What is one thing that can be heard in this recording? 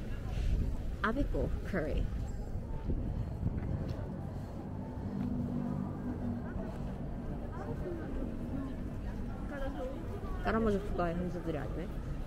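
Young men and women chat faintly in the distance outdoors.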